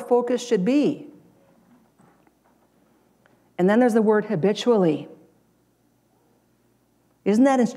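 A middle-aged woman speaks calmly through a microphone, pausing between phrases.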